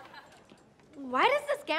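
A young man speaks with surprise.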